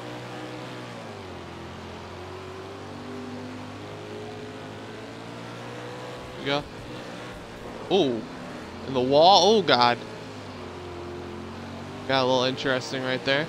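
A racing car engine drones steadily, its pitch rising and falling as it speeds around the track.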